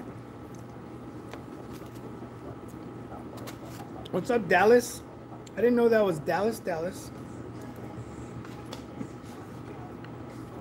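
A man eats noisily, chewing and slurping.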